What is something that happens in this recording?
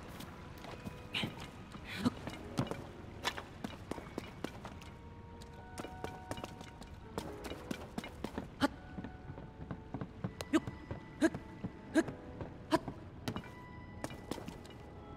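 Footsteps knock on wooden boards.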